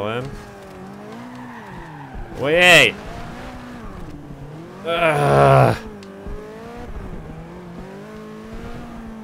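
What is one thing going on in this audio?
A racing car engine revs and roars steadily, rising and falling in pitch.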